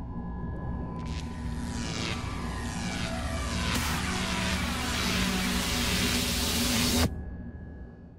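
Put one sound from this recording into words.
An electric whoosh crackles, builds up and cuts off abruptly.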